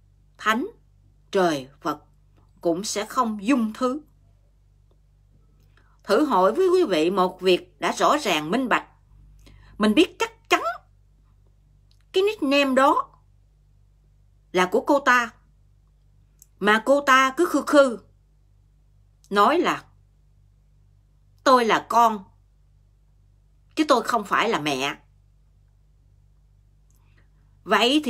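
A middle-aged woman speaks calmly and close to the microphone, in short phrases with pauses.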